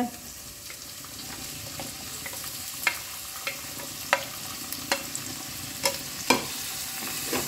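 Chopped vegetables tumble into a pan.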